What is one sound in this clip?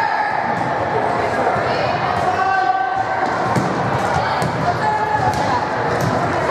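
A crowd of spectators chatters and calls out in an echoing gym.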